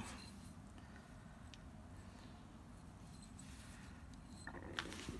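Stone clicks and scrapes softly against stone.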